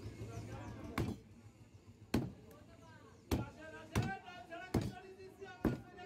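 A cleaver chops down hard on a wooden block, again and again.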